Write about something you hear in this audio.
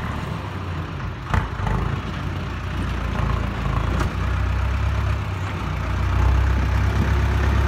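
A tractor blade scrapes and pushes loose dirt.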